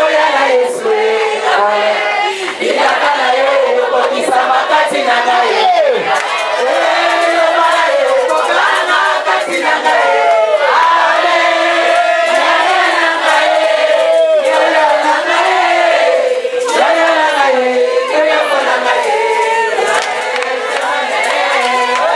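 A crowd claps hands in rhythm.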